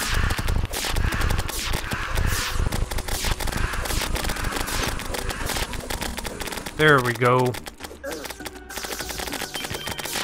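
Rapid magic weapon shots fire in quick bursts.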